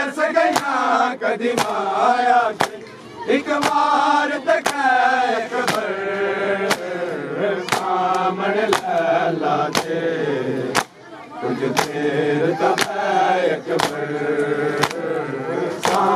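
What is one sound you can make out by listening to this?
Men beat their chests in a steady rhythm of loud slaps.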